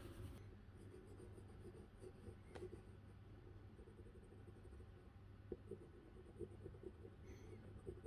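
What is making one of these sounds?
A pencil scratches softly on an eggshell.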